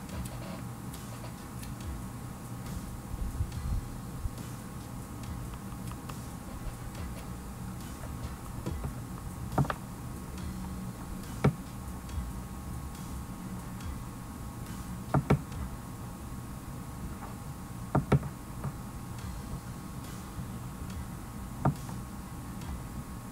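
A young man speaks calmly and close to a computer microphone.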